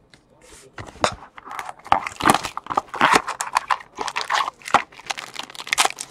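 A foil wrapper crinkles and tears as hands pull it open.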